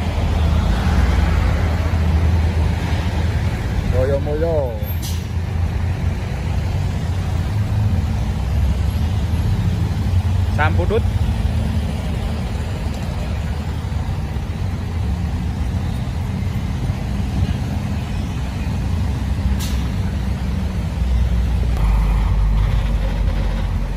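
A heavy truck's diesel engine rumbles steadily close by.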